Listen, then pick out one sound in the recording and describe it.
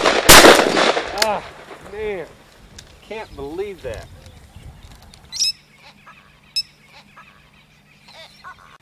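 Birds call overhead.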